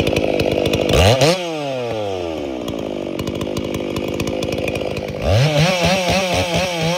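A two-stroke chainsaw revs up to full throttle.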